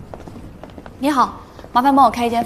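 A young woman speaks politely.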